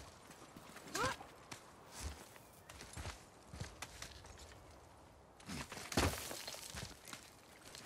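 Rock scrapes and thuds as a warrior climbs a cliff.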